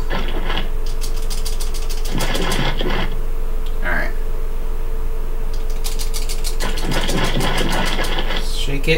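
A game timer ticks rapidly through a television speaker.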